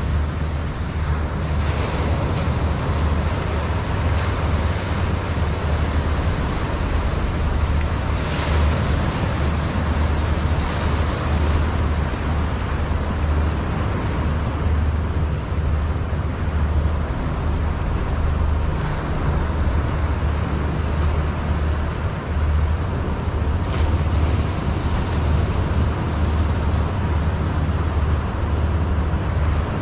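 Small waves wash gently against the shore.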